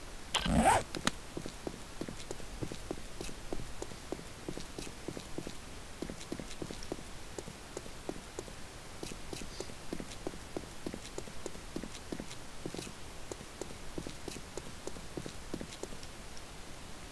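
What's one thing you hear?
Footsteps tread steadily along a tunnel floor.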